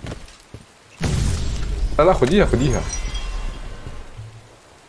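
A loud icy blast bursts and rings out.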